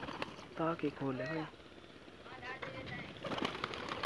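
Pigeons flutter their wings close by.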